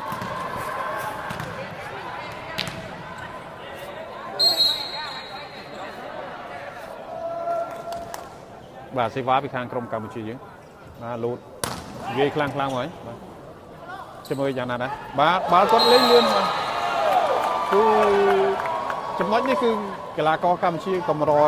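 A large crowd murmurs in an echoing arena.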